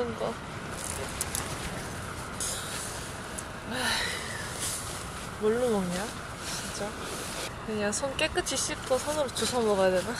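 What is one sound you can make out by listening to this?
Tissue paper crinkles in a young woman's hands.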